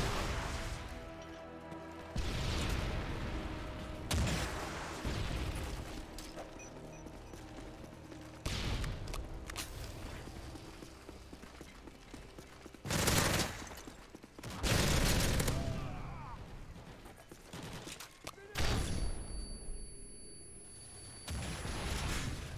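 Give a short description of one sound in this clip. Loud explosions boom.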